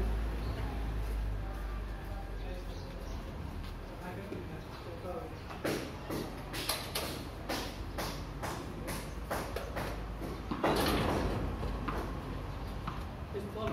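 Footsteps scuff on a paved yard.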